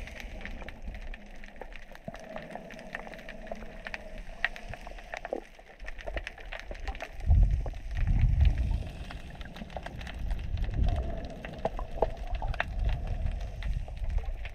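Faint crackling clicks sound underwater.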